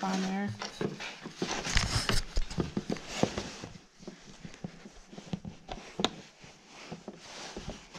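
A screwdriver pries and clicks against a plastic panel.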